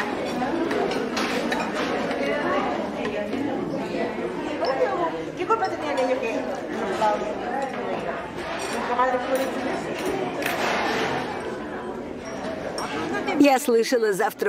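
Elderly people chat quietly in the background.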